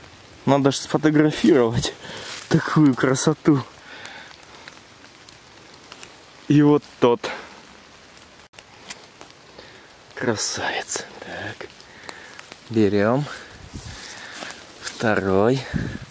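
Dry leaves rustle as a hand reaches through them.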